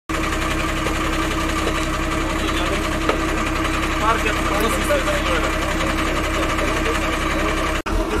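A truck engine idles with a steady hum.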